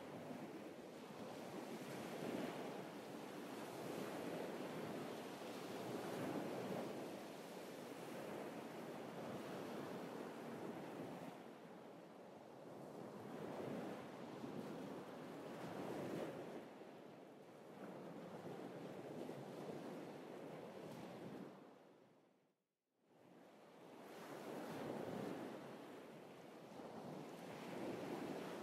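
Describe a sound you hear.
Waves wash onto a shore in slow swells.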